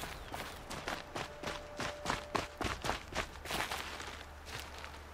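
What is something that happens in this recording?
Footsteps crunch quickly over dry ground and brush through grass.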